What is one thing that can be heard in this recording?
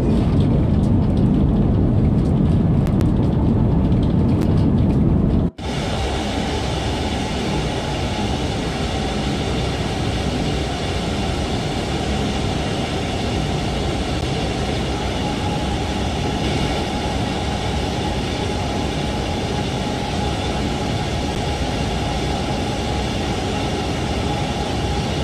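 A high-speed train rumbles steadily along the tracks.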